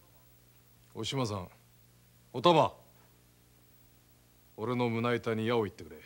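An elderly man speaks gravely, close by.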